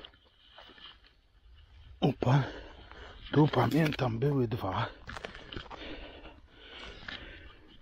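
Footsteps rustle through dry grass and leaves.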